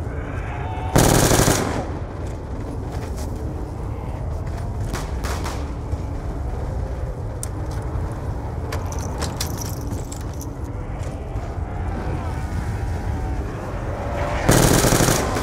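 A rifle fires in short, loud bursts.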